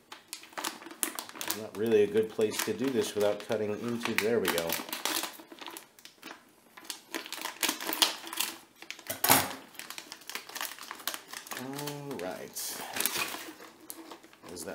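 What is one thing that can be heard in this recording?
Plastic packaging crinkles and rustles as it is handled.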